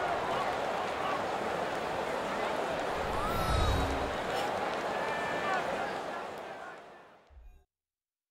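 A large stadium crowd roars steadily and then fades away.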